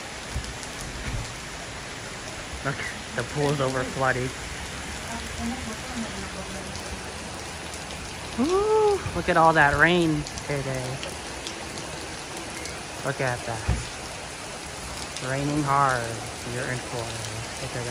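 Hailstones splash into a pool.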